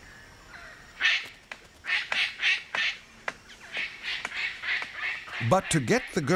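Parrots chatter in quick, rasping bursts.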